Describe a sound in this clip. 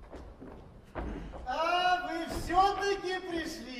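A man sings loudly in a large hall.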